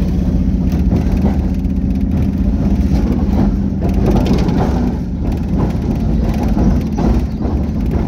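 Tyres roll over an asphalt road.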